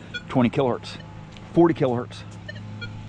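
A metal detector sounds two loud warbling tones in quick succession.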